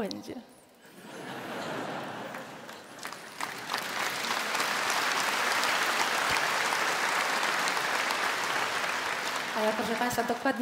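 A large audience applauds loudly.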